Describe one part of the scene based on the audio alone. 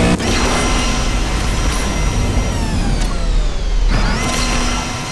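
A racing car engine roars at high speed, its whine dipping and then climbing again.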